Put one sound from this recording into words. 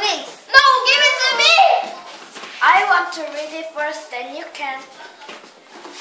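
Young girls talk and call out excitedly close by.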